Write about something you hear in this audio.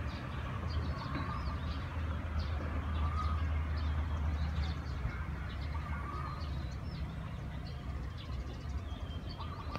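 A diesel locomotive rumbles low and steady some way off.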